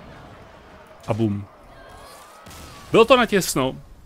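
A magical blast bursts with a bright crackling shimmer.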